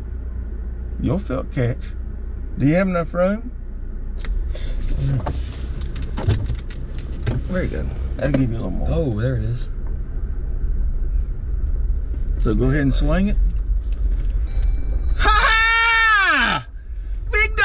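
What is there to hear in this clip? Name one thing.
A young man speaks and laughs close by.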